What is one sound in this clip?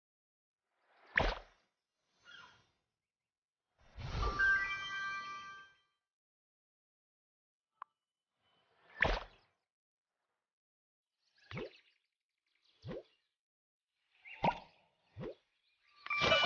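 Short electronic chimes and whooshes play now and then.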